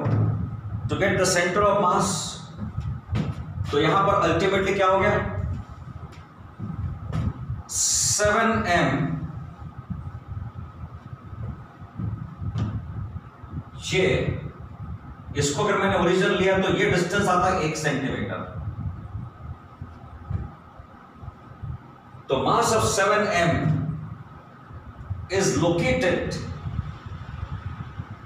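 A middle-aged man speaks as if lecturing.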